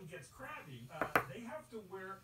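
A small plastic figure is set down on a table with a light knock.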